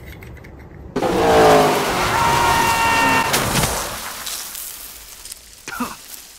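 A car skids across dirt with a rushing roar.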